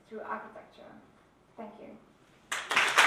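A woman speaks calmly into a microphone in a large hall.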